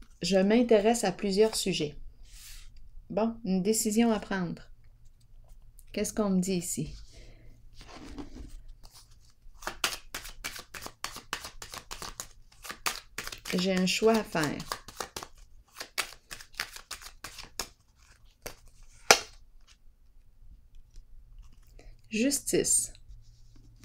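A card is laid down on a wooden table with a soft tap.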